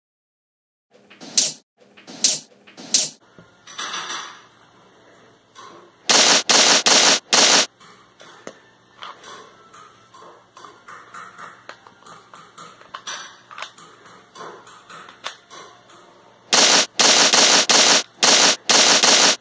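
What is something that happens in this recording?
A toy pistol fires with sharp, rapid bursts of shots.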